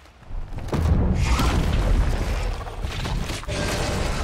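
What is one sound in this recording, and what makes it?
A huge beast roars loudly and deeply.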